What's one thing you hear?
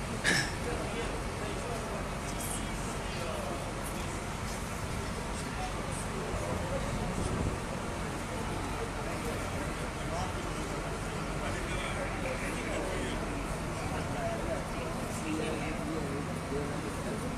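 Men talk in a murmur nearby.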